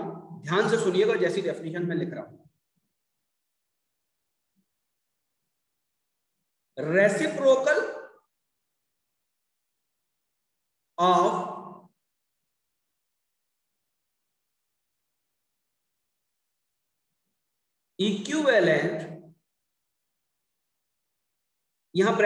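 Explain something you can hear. A man speaks calmly through a microphone, in short phrases with long pauses.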